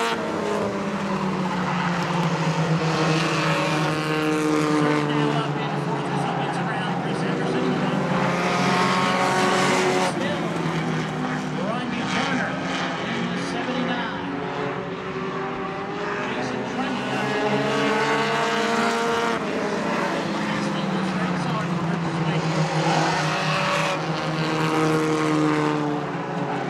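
Race car engines roar loudly, rising and falling in pitch as the cars speed past.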